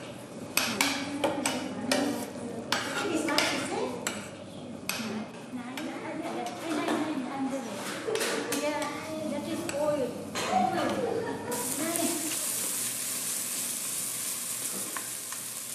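A ladle scrapes and knocks against a metal pot.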